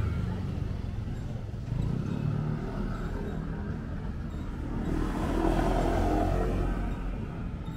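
A motor scooter hums by at a distance.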